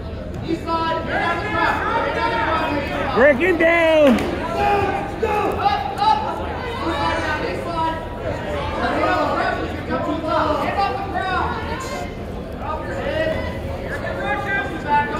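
A crowd of spectators talks and shouts in a large echoing gym.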